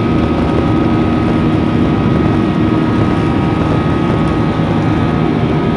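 Jet engines roar loudly and steadily as an airliner races down the runway.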